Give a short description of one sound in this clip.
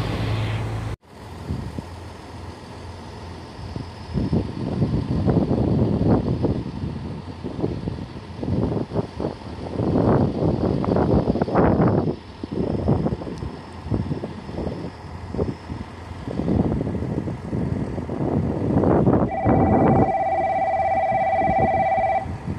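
A train rumbles as it approaches from far off.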